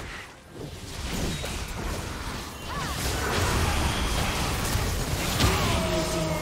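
Game spell effects burst and whoosh.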